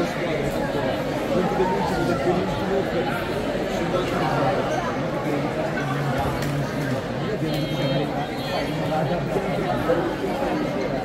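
Children's voices chatter and call out in a large echoing hall.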